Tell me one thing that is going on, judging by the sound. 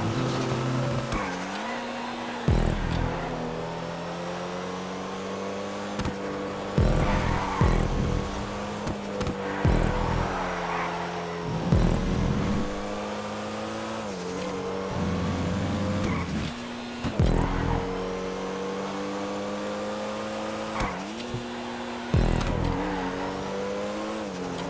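A race car engine roars steadily, its pitch shifting as it changes gear.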